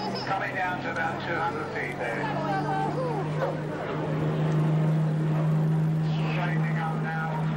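A jet plane drones steadily overhead.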